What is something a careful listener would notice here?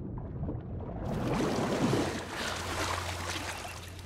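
Water splashes as a swimmer comes up to the surface.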